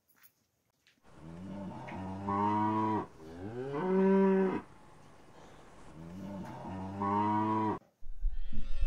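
Cows moo loudly nearby.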